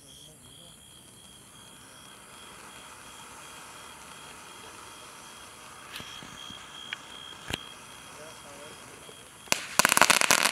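A firework fuse fizzes quietly.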